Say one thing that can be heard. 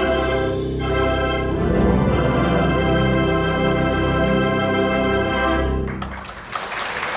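A large pipe organ plays loud sustained chords in an echoing hall.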